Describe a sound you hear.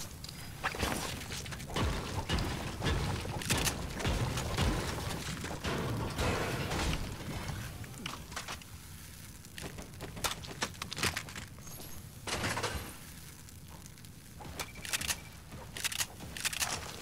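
Footsteps thud across a hard floor.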